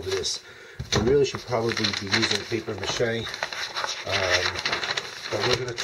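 Newspaper rustles and crinkles as it is handled close by.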